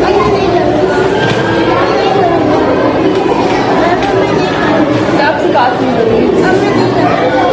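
Young children chatter and call out in a busy room.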